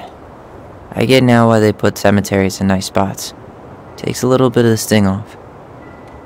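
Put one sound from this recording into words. A man answers calmly, close by.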